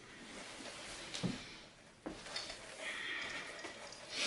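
Footsteps thud softly on carpet.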